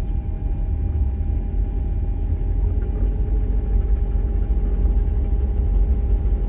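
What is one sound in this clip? A semi truck rumbles by close alongside.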